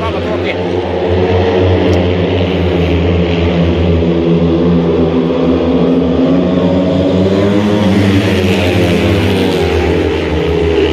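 Racing motorcycle engines roar loudly, rising and falling in pitch.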